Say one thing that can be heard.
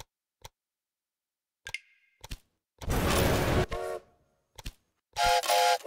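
A mouse clicks on buttons.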